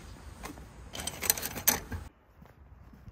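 A letter rustles as it slides through a mailbox slot.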